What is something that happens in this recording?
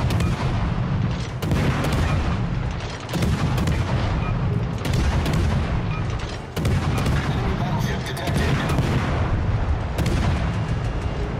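Heavy naval guns fire in repeated booming blasts.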